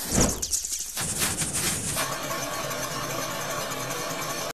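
A chisel scrapes against wood spinning on a lathe.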